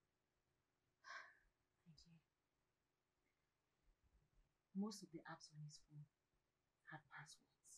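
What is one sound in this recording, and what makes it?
A young woman speaks calmly and softly nearby.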